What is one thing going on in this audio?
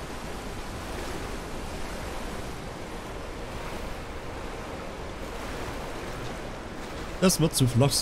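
Water splashes and sloshes steadily.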